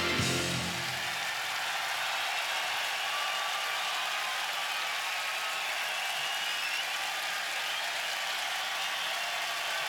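A large crowd cheers and screams in a huge echoing arena.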